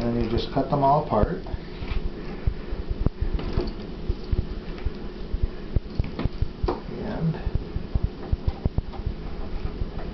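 A pastry wheel rolls and clicks against a table as it cuts dough.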